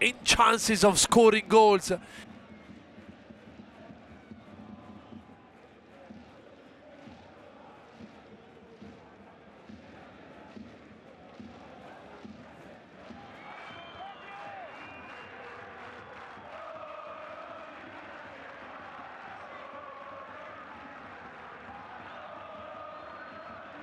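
A large stadium crowd murmurs and chants steadily.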